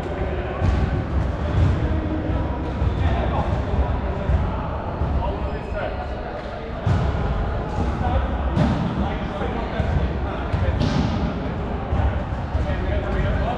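Sneakers squeak and shuffle on a hard floor.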